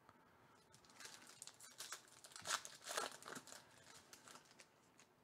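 A foil wrapper crinkles and tears.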